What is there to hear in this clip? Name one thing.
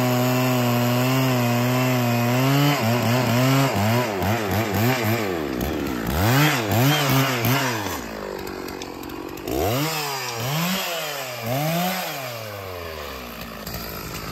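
A chainsaw engine idles steadily, then revs up and down in bursts.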